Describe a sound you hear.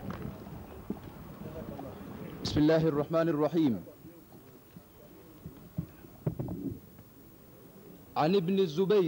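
A man speaks quietly between the chants.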